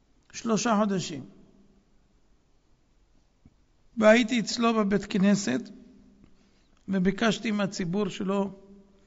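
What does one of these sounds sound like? An elderly man speaks calmly into a microphone in short bursts with pauses.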